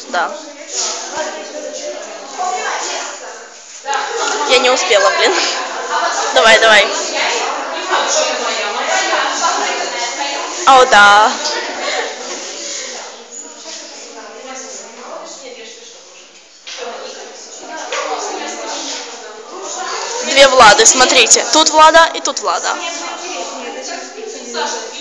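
Young women talk and laugh loudly close by.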